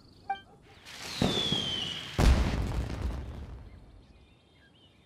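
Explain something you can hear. A firework shoots up and bursts with a loud boom that rumbles away.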